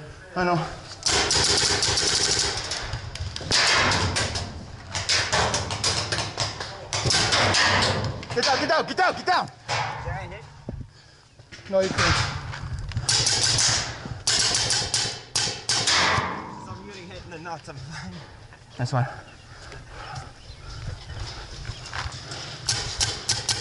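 A paintball marker fires sharp popping shots.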